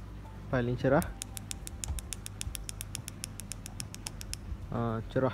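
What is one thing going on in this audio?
A small remote button clicks quickly and evenly, many times in a row.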